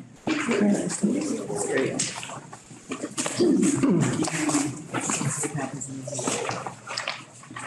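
Paper rustles as sheets are handled.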